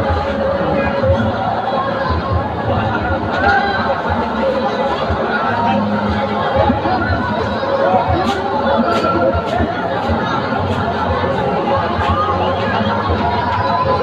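A large crowd chatters and murmurs all around outdoors.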